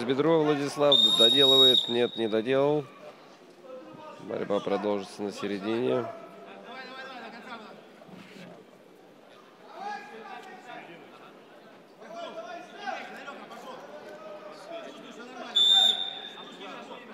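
A referee blows a sharp whistle blast.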